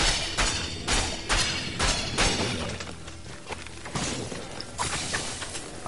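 Sword blows strike and clang in quick succession.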